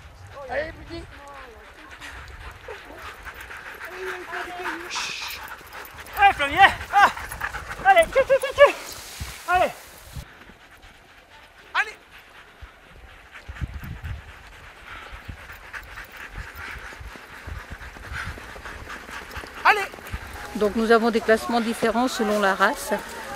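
Sled runners hiss over packed snow.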